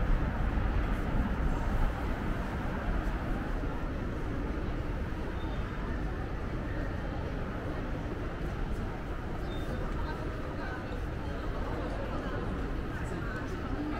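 A large indoor hall hums with faint, echoing background noise.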